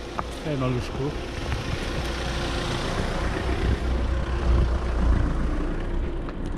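A car drives slowly past nearby.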